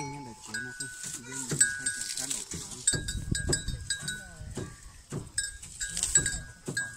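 A metal bell on a cow's neck clanks irregularly nearby.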